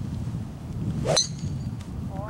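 A second golf club strikes a ball with a sharp crack.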